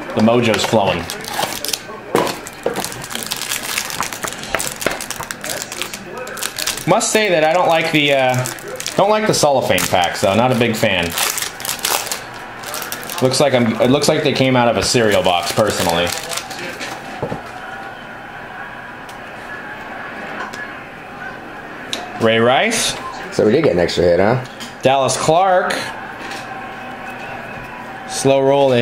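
A foil card pack crinkles and rustles in someone's hands.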